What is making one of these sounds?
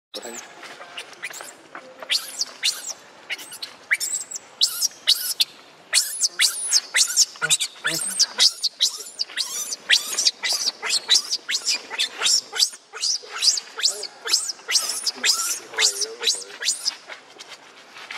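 A baby monkey screams in high, shrill squeals, over and over.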